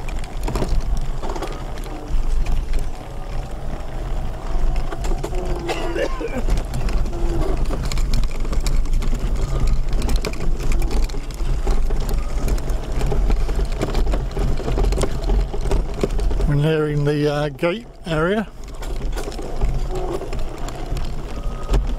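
Wind rumbles loudly against a fast-moving microphone outdoors.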